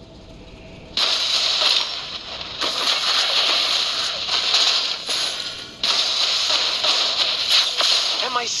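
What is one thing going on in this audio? Hits land with sharp impacts in a game.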